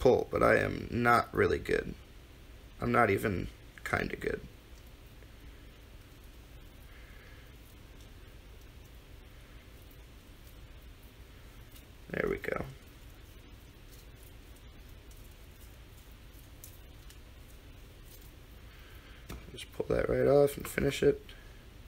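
A knife slices softly through raw meat.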